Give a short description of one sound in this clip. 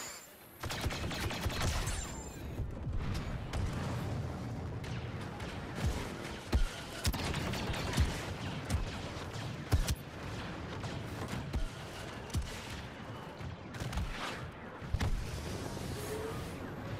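Heavy footsteps run across hard ground.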